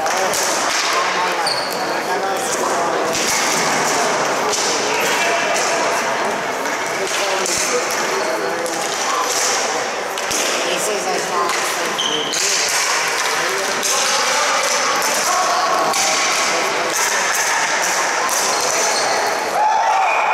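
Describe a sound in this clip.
Sticks clack against each other.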